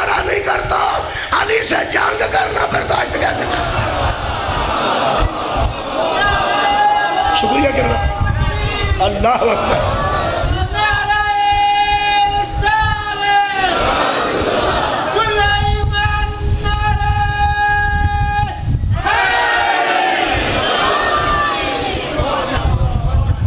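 A man chants loudly through a microphone, holding long sung notes.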